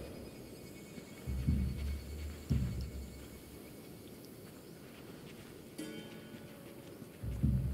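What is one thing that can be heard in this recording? Soft footsteps rustle through dry grass.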